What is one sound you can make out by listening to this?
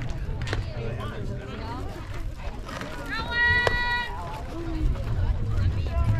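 Young women call out and cheer across an open field.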